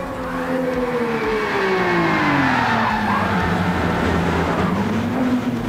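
Tyres squeal as a racing car slides through a bend.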